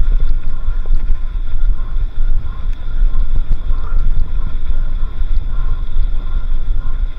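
Bicycle tyres roll and crunch over a sandy track.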